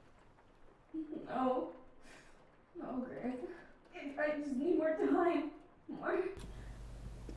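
A young man speaks anxiously and close by.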